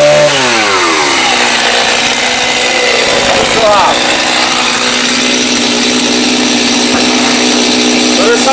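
A chainsaw idles with a steady low putter.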